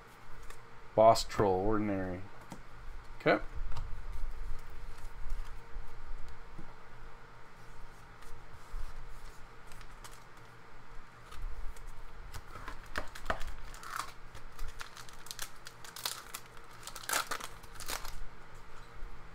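Trading cards rustle and tap softly as they are handled and laid down.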